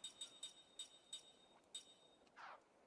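Short electronic menu beeps tick in quick succession.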